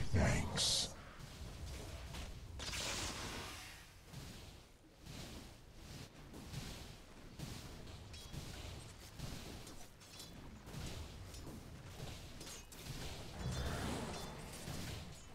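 Game characters clash in battle with spell effects and hits.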